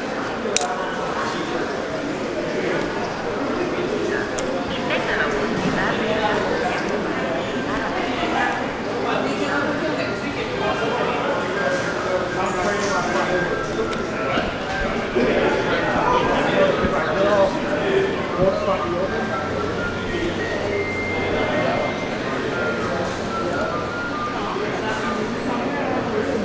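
A man talks nearby in a large echoing hall.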